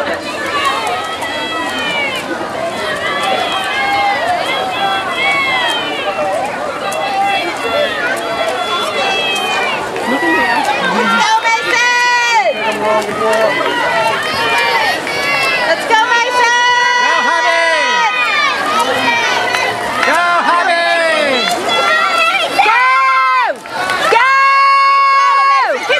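A swimmer splashes through the water with steady strokes.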